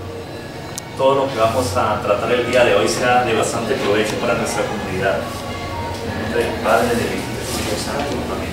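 A group of men and women sings together in a room.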